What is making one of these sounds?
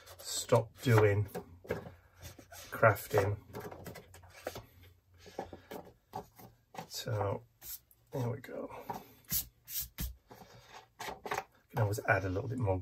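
Paper rustles and crinkles as a sheet is handled.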